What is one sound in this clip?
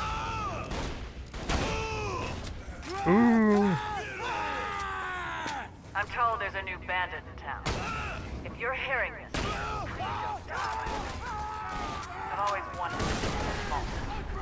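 Rifle shots fire loudly, one at a time.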